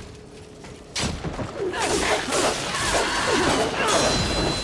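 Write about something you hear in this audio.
A blade slashes and strikes a creature.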